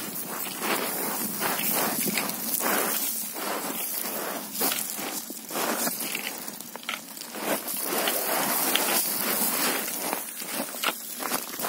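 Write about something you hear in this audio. A trekking pole taps on rock.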